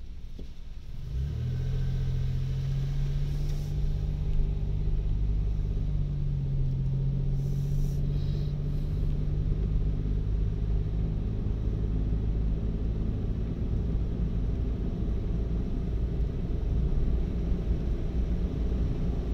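Tyres roll and hiss on a wet road.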